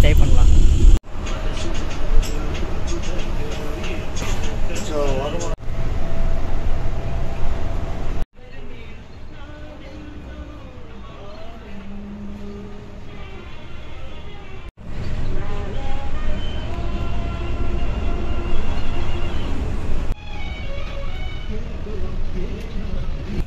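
A bus engine hums steadily while driving.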